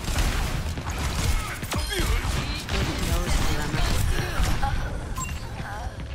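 Rapid gunfire rattles amid sci-fi blasts.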